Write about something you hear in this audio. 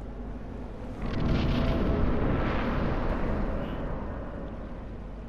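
A waterfall rushes loudly and then fades away.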